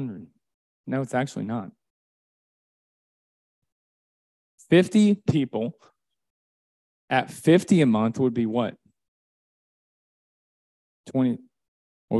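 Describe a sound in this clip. A young man speaks into a microphone in short, lively phrases with long pauses between them.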